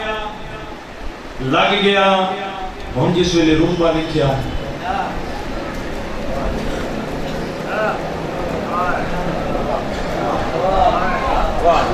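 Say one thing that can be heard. A young man chants loudly into a microphone with a long, sung voice.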